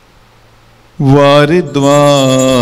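A man chants in a long, steady tone into a microphone.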